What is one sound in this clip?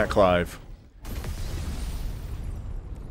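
A loud explosion booms and roars.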